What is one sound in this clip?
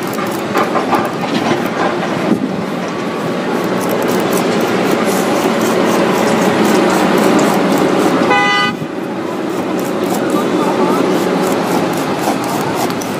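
A blade scrapes and slices through rubber.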